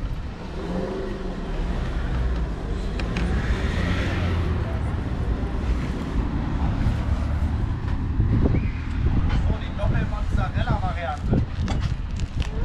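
Wind blows outdoors, rumbling steadily against the microphone.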